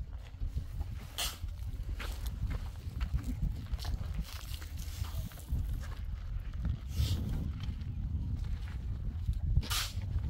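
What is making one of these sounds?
A shovel scrapes and digs into sand.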